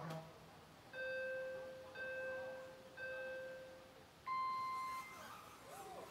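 Three short electronic beeps sound over a loudspeaker, then a higher, longer beep.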